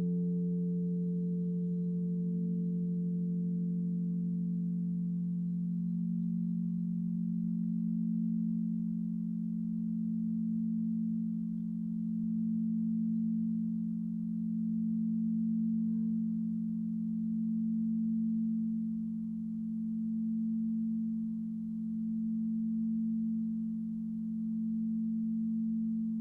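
Crystal singing bowls hum with a deep, steady, swelling drone.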